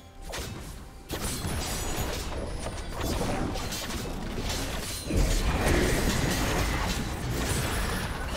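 Game spell effects and attacks crackle and clash in quick bursts.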